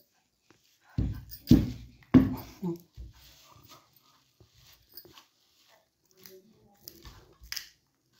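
A plastic bottle thumps against a soft surface.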